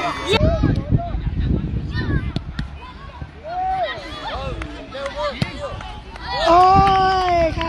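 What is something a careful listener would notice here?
Young players shout excitedly across an open field.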